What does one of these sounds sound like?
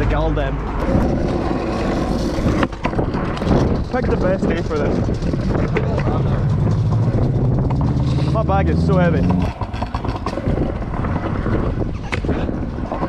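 Scooter wheels roll and rattle over pavement.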